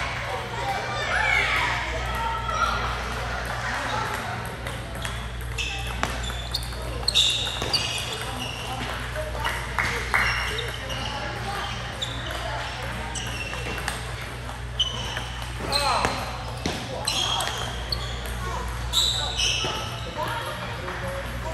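Sneakers squeak on the floor as players move.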